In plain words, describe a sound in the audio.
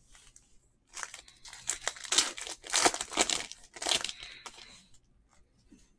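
A foil pack crinkles loudly as it is torn open.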